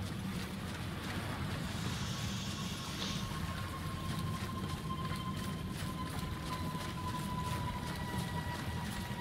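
Footsteps crunch quickly over dry leaves and soft ground.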